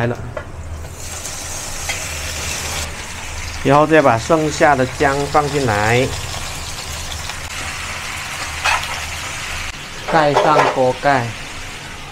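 Meat sizzles loudly in hot oil.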